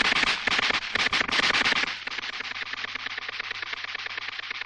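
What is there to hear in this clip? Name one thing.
Snow and earth burst in a loud explosion.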